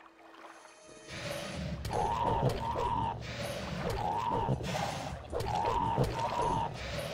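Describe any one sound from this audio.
A sword swishes through the air in a fight.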